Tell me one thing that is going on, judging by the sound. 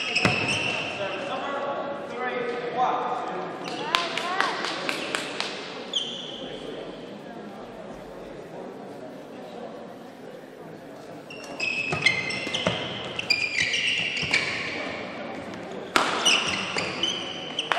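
Shuttlecock hits crack sharply off rackets in a large echoing hall.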